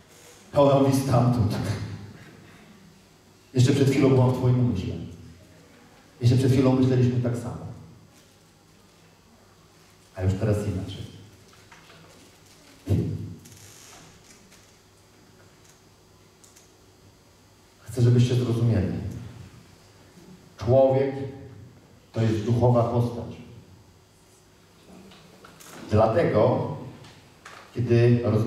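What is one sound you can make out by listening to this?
A man speaks with animation in bursts, heard through a microphone in a large echoing hall.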